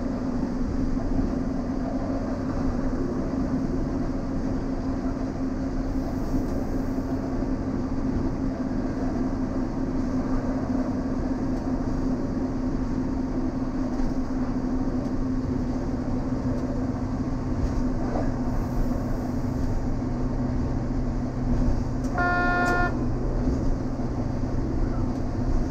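Train wheels rumble on rails.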